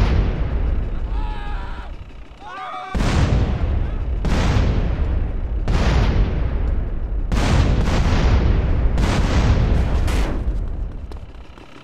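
Loud explosions boom one after another.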